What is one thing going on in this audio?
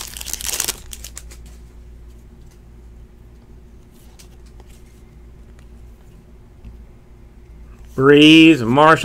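Trading cards rustle and slide against each other in hands.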